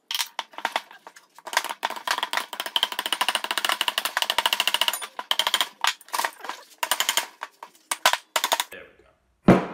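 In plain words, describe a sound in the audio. Metal engine parts clink and scrape against each other.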